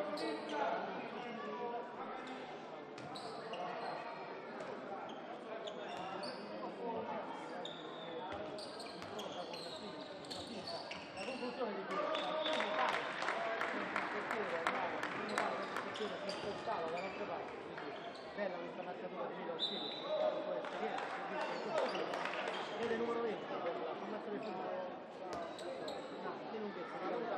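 Sports shoes squeak on a hard court.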